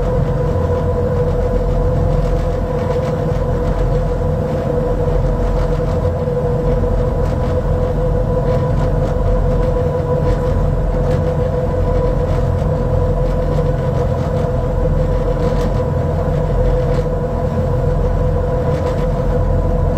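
A boat's engine drones steadily with a low hum.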